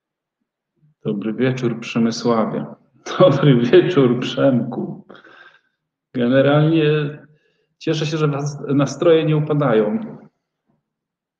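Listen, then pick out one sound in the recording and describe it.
A man speaks casually through an online call microphone.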